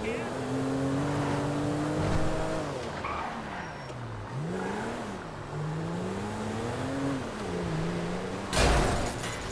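A car engine hums and revs up and down as the car drives.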